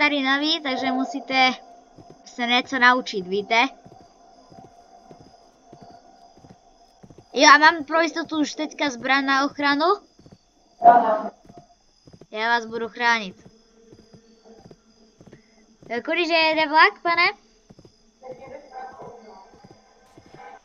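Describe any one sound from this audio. A horse's hooves beat in a quick, steady canter.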